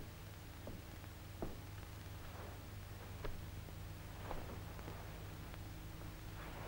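A heavy coat rustles as it is handled.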